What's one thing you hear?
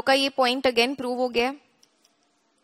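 A young woman speaks clearly and close to a microphone.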